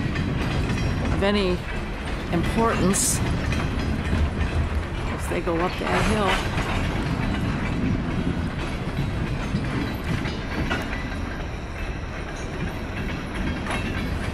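A diesel locomotive rumbles steadily in the distance as a freight train rolls along.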